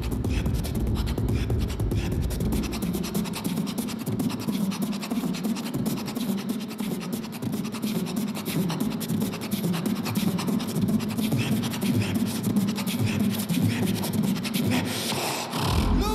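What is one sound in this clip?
A young man beatboxes rhythmically into a microphone through loudspeakers in a large echoing hall.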